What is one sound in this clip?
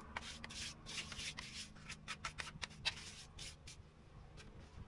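A trowel scrapes and spreads mortar.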